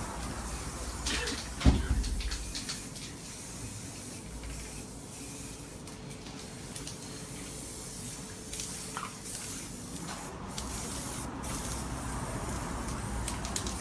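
A spray can hisses in short bursts.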